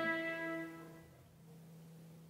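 A fiddle plays a long held note that rings out and fades.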